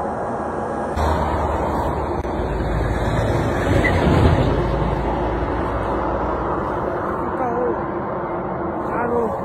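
A young man speaks quietly, close to the microphone.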